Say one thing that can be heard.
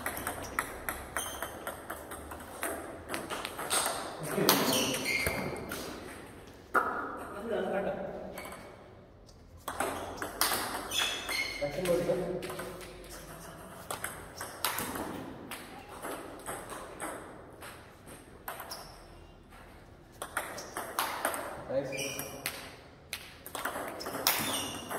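A ping-pong ball clicks quickly back and forth on paddles and a table in an echoing hall.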